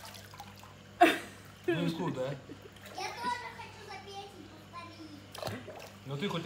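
Water splashes as a toddler slaps it.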